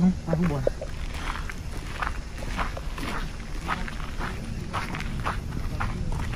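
Footsteps scuff on a hard path.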